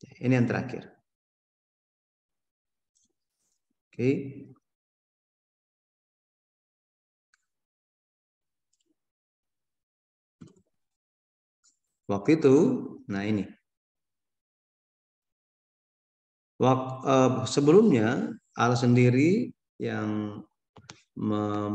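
A man speaks calmly through a microphone on an online call, pausing often.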